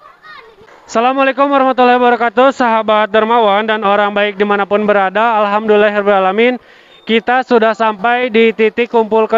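A group of men and women chants loudly in unison.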